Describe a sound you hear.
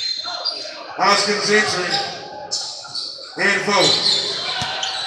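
Young men shout and call out in a large echoing gym.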